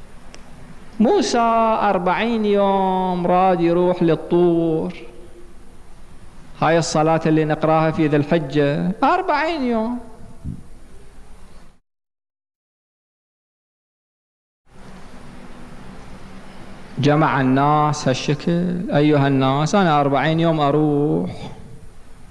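A middle-aged man speaks with emphasis through a microphone, with long pauses between phrases.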